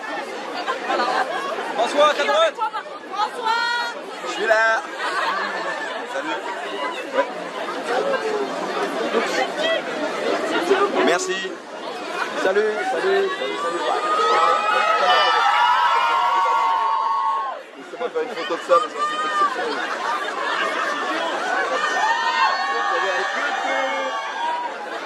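A crowd of fans chatters and calls out loudly nearby outdoors.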